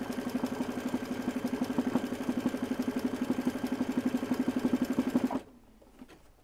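An embroidery machine needle hammers rapidly and steadily, then stops.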